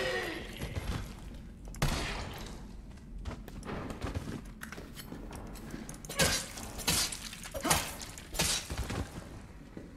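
Gunshots ring out in sharp bursts.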